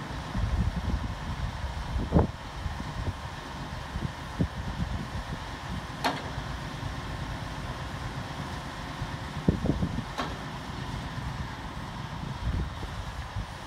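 A crane lifts a heavy load with a low motor rumble.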